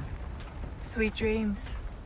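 A young woman speaks calmly and briefly.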